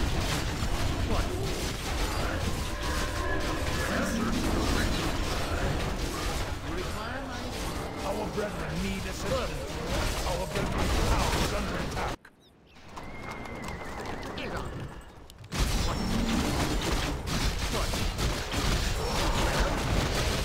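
Swords clash and spells burst in a busy battle.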